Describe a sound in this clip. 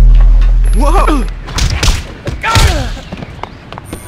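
Blows land with heavy thuds in a brief fight.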